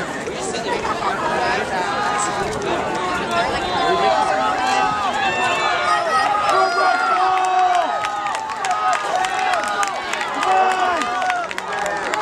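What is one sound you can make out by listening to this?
A crowd of young spectators cheers and shouts excitedly outdoors.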